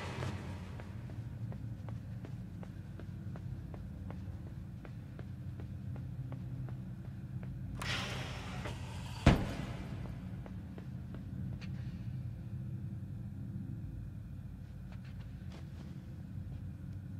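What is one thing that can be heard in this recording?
A low, steady hum drones in a large empty hall.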